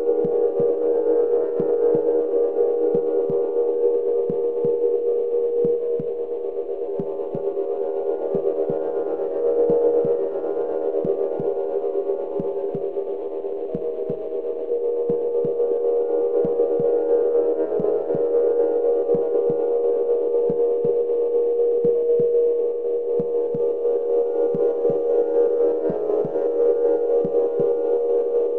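A steady electronic drone hums throughout.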